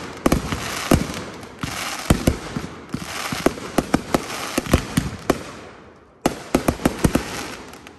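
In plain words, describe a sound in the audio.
Sparks from fireworks hiss and fizz.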